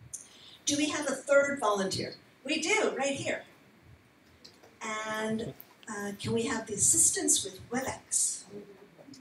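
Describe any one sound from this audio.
A woman speaks into a microphone in a large room, heard through loudspeakers.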